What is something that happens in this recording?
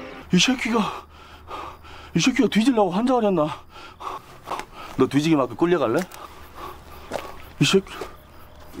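A man speaks tensely and emotionally, close by.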